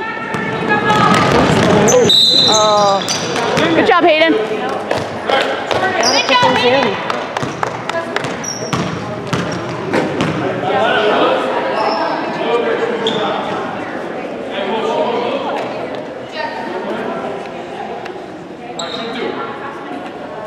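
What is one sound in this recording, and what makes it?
A crowd of spectators cheers and shouts loudly in an echoing gym.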